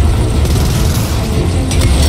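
Gunshots ring out in a burst.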